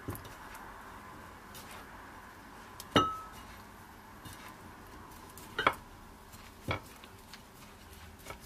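Food rustles and pats softly as a hand presses it into dry flour.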